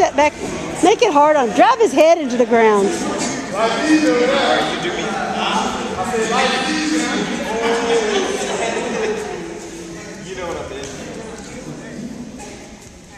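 Young men and women talk with animation in a large echoing hall.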